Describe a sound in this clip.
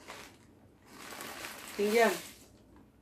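Crunchy snacks pour out of a packet onto a plate.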